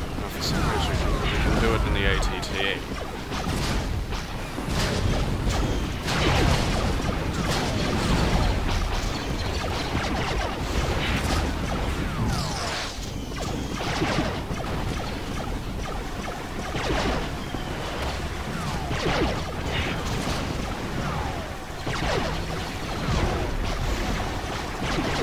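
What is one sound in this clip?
A gun turret fires repeated laser blasts.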